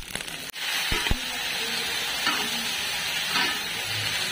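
Vegetables sizzle as they fry in hot oil.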